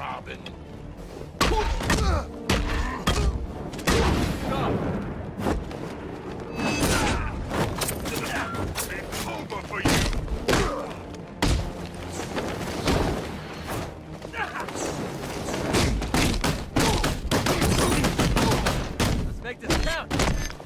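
Heavy punches and kicks land with sharp thuds.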